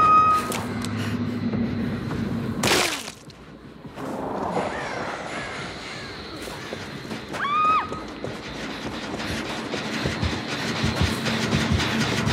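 Footsteps run quickly over sandy ground.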